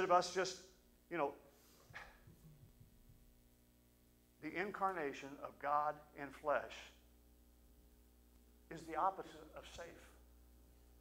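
A middle-aged man speaks calmly through a microphone, in bursts with pauses.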